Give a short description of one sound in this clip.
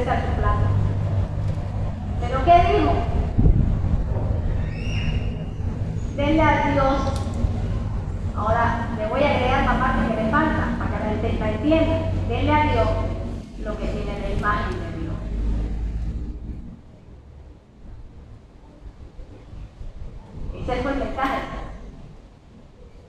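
A woman speaks with animation through a microphone and loudspeaker.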